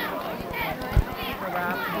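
Football players' pads clash at the snap.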